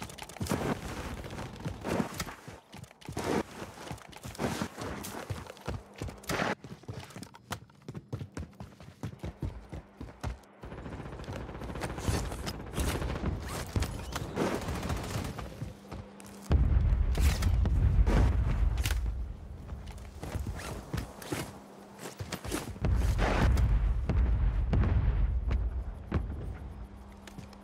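Footsteps run quickly over grass and gravel.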